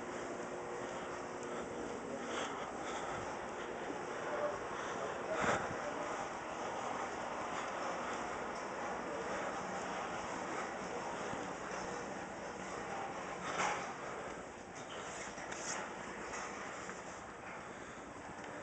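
Steady background hum fills a large indoor space.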